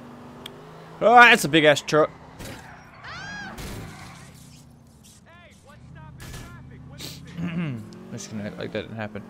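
A young man shouts and talks excitedly into a microphone.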